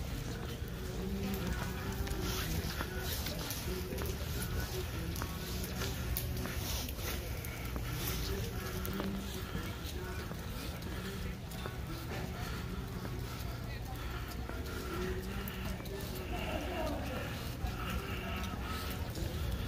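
Light rain patters steadily on wet pavement outdoors.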